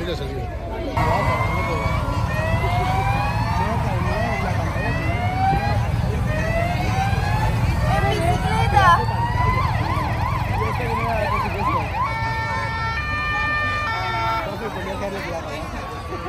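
Police sirens wail in quick rising sweeps.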